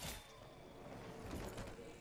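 A sword clashes against a blade in a fight.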